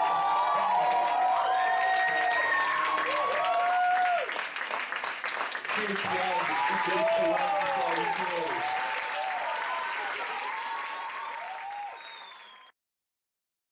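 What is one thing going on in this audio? A crowd cheers and whistles excitedly.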